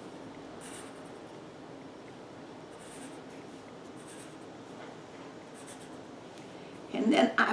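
A felt-tip marker squeaks and scratches across paper in short strokes.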